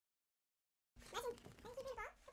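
A dog squeaks a rubber toy in its mouth.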